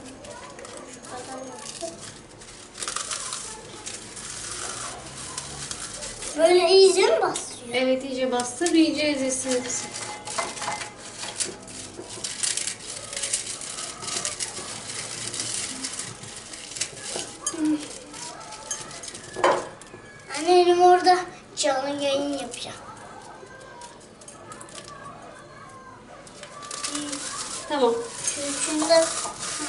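Dry biscuits crunch and crumble as hands break them into a glass bowl.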